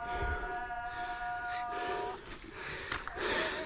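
Footsteps scuff and crunch on a dry dirt slope.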